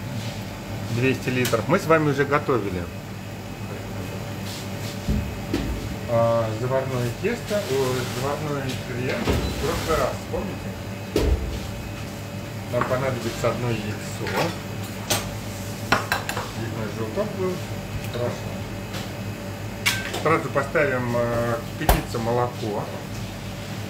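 A man talks calmly close to the microphone.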